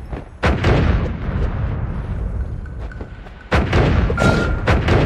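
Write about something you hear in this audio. A magic spell crackles and whooshes in bursts.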